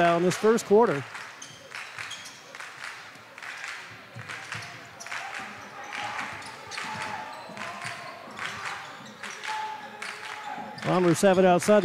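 Sneakers squeak.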